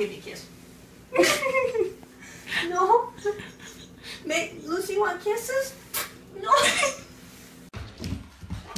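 An elderly woman talks to a dog.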